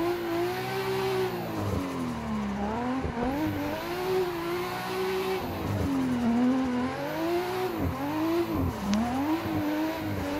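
A racing car engine revs up and down, dropping in pitch at each gear change.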